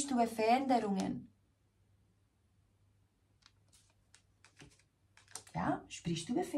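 A woman speaks softly and calmly, close to a microphone.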